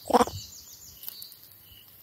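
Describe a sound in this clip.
A monkey chews on grass.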